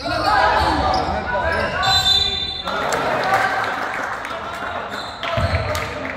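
Young players shout to each other across the hall.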